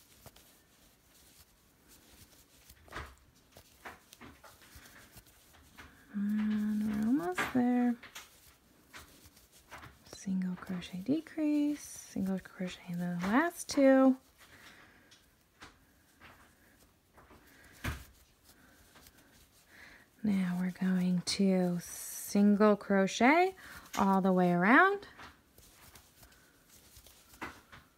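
A crochet hook softly rubs and pulls through yarn.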